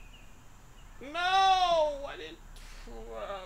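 A man lets out a long, drawn-out cry.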